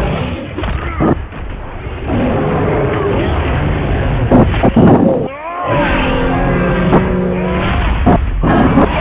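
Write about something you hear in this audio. Heavy blows strike with sharp, crunching impacts.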